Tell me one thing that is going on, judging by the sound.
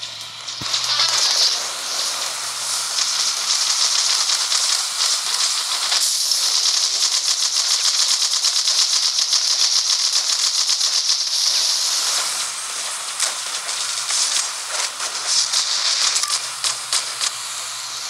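Rapid game gunfire crackles and pops in quick bursts.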